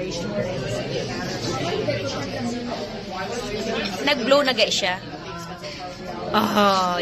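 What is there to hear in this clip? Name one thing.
Several people chatter and talk nearby.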